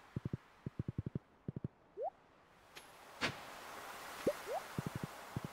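Quick soft footsteps tap in bursts.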